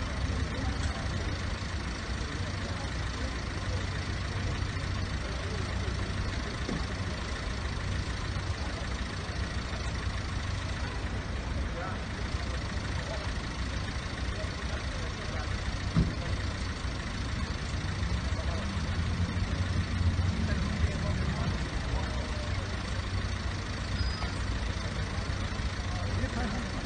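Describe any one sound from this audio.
A crowd of people murmurs nearby.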